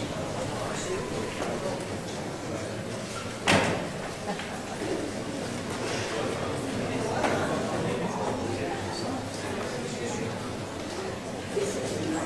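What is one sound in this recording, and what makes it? An audience murmurs softly.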